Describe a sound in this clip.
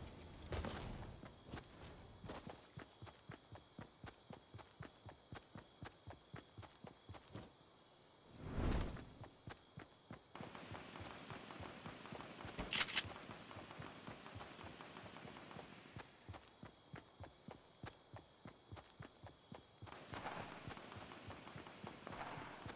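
Quick footsteps run steadily over the ground in a video game.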